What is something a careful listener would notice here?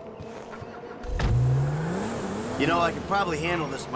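A car engine starts and revs up.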